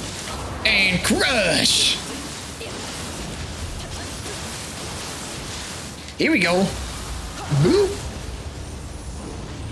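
Blades clash and slash with sharp metallic hits.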